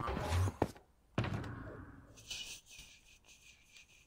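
A heavy chest creaks open.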